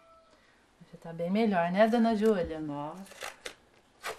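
An elderly woman speaks with animation, close by.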